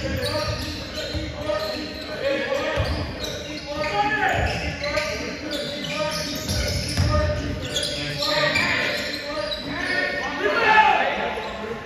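Spectators nearby talk and call out.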